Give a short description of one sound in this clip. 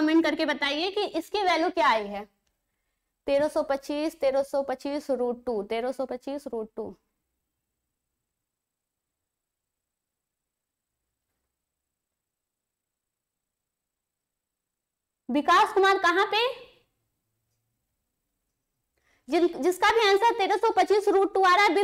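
A young woman talks clearly into a close microphone, with pauses.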